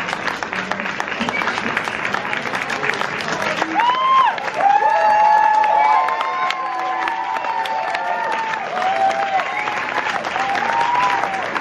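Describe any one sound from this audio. A group of young men claps their hands outdoors.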